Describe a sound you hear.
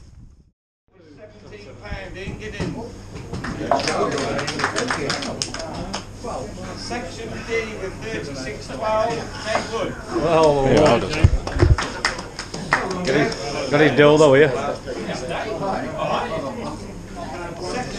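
A crowd of men chatters loudly indoors.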